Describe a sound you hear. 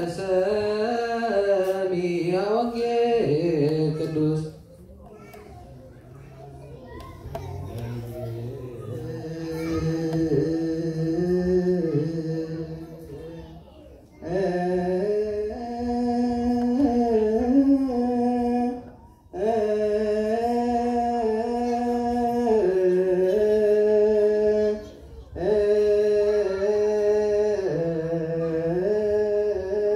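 A choir of men and children chants in unison, echoing in a hall.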